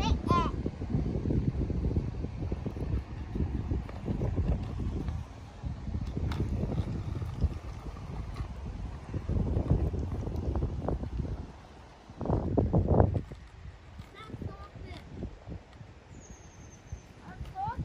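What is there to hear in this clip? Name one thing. A small scooter's plastic wheels rattle on asphalt.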